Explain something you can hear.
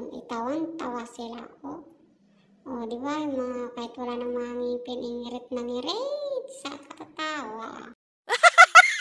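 An older woman sings close by.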